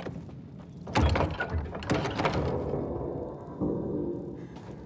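A heavy metal door scrapes and creaks open.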